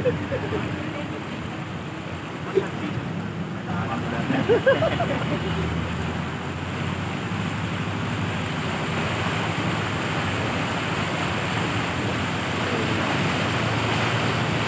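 Floodwater rushes and churns steadily outdoors.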